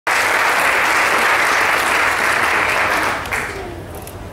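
An audience applauds.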